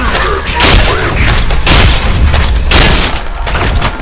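A shotgun fires loud, booming blasts.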